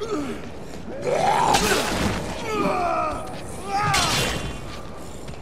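A heavy hammer thuds wetly into a body.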